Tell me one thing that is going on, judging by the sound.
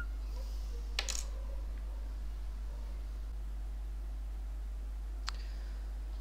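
A mouse clicks.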